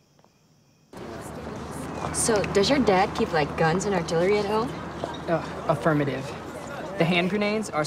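Young men and a young woman chat nearby outdoors.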